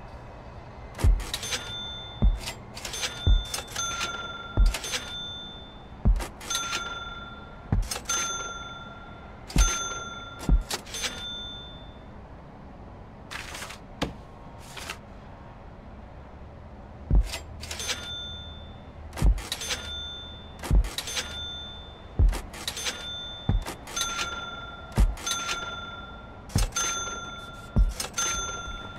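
A video game's building placement sound effect clicks and chimes as objects are placed.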